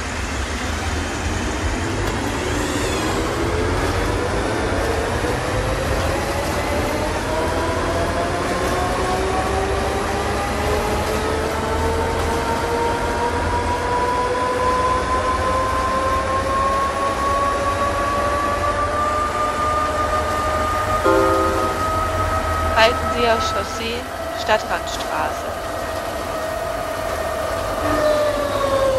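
A bus engine hums and whines, rising steadily in pitch as the bus picks up speed.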